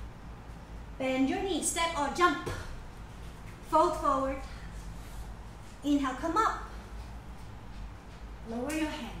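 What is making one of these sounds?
A woman speaks calmly in short phrases close by.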